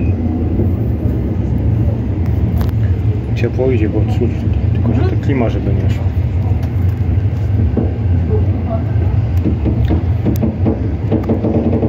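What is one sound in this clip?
A train rumbles steadily along the tracks, heard from inside a carriage.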